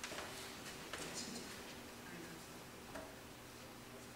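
A string quartet plays softly in a reverberant hall.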